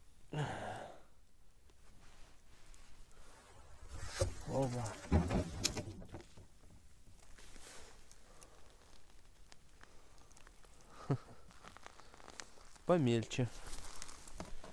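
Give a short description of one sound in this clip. Boots crunch on icy snow.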